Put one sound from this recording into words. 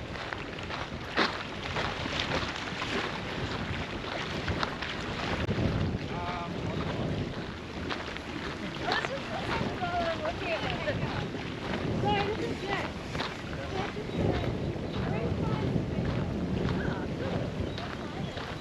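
Wind buffets outdoors with a low rumble.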